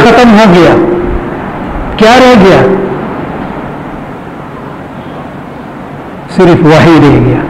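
An elderly man recites in a slow, melodic chant through a microphone.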